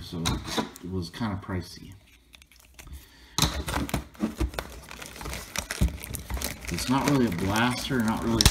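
Fingers tap and rub against a cardboard box.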